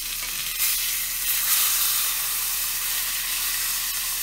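A metal spatula scrapes the pan.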